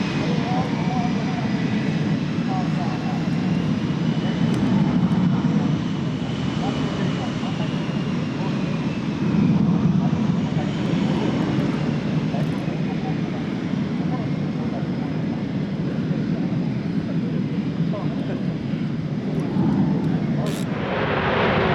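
A jet engine roars loudly with a high whine as a fighter jet taxis.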